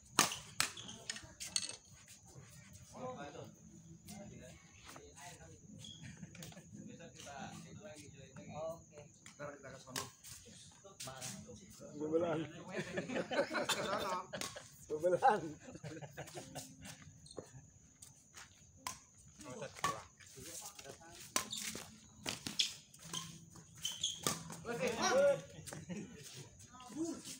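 Shoes squeak and scuff on a hard court.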